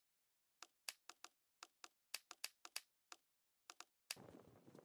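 Short game menu clicks sound in quick, uneven succession.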